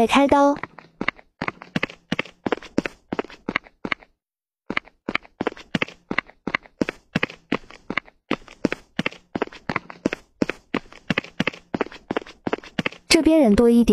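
Quick footsteps tap steadily on a hard path.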